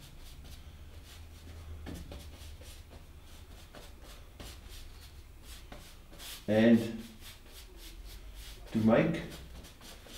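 A brush dabs and scrapes softly on canvas.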